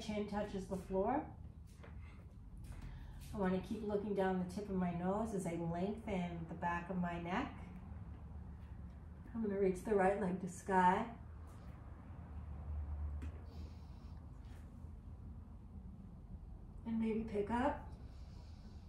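A woman speaks calmly and slowly, close to a microphone.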